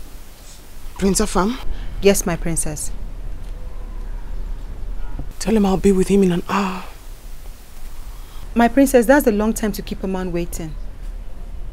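A young woman speaks with feeling, close by.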